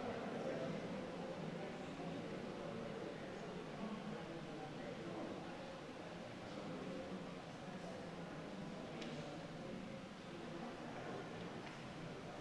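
A crowd of adults murmurs and chats quietly in an echoing hall.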